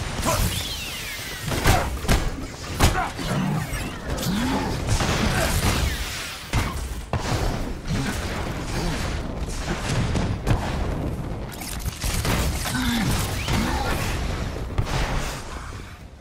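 Metal debris crashes and clatters onto pavement.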